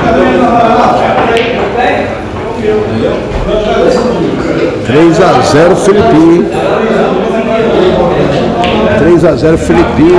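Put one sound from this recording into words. A cue tip strikes a billiard ball.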